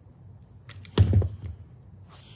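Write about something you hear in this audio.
A screwdriver is set down with a dull knock.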